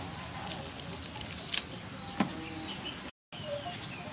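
Hands rustle and snap fresh leafy stems.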